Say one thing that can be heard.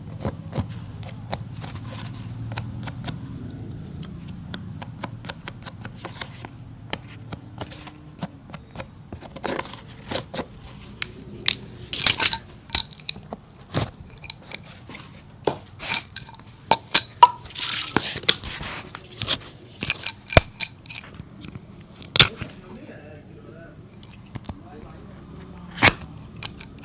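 A small metal tool taps and clicks sharply against a shoe.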